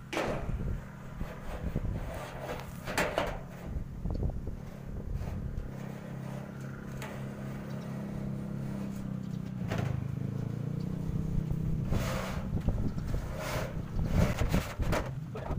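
A thin metal sheet scrapes and rattles against a frame.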